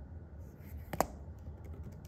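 A pen is set down with a sharp tap.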